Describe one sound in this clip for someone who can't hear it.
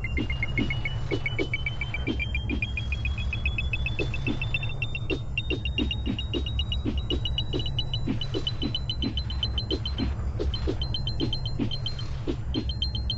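Quick game coin chimes ring in a rapid run, rising in pitch.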